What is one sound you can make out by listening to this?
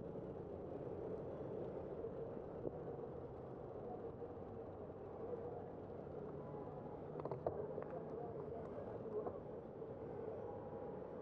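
Steady city traffic hums in the distance.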